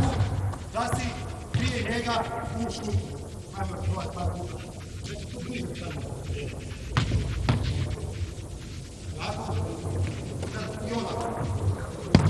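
A man speaks loudly, and his voice echoes through a large hall.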